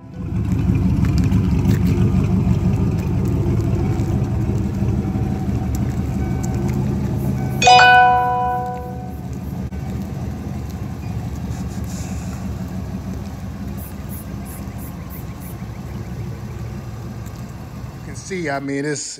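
A car engine idles with a deep, rumbling exhaust.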